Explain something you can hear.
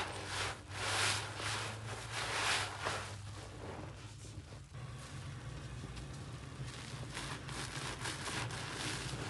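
A wet sponge squelches as it scrubs through thick foam.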